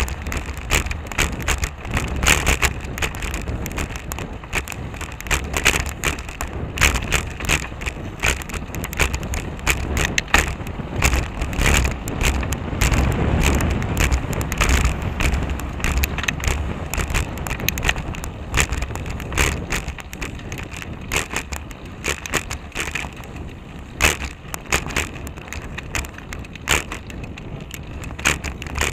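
Wind rumbles steadily past a moving rider.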